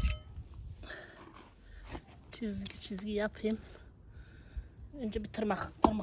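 A small garden trowel scrapes and digs into loose soil.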